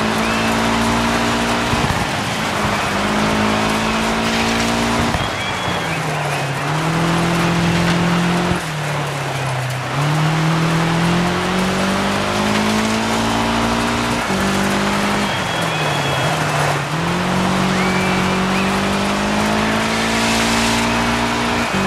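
A car engine revs hard, rising and falling in pitch as gears shift.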